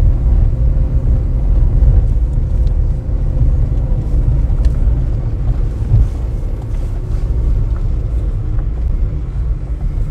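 Tyres crunch and rattle over a rough gravel track.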